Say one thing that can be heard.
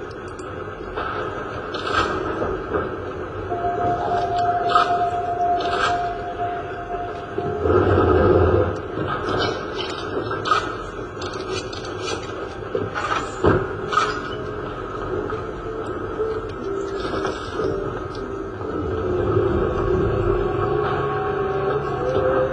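Game music and effects play through a speaker.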